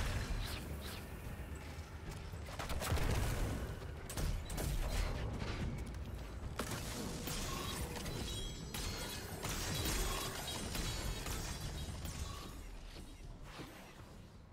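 Gunshots fire in rapid bursts with loud blasts.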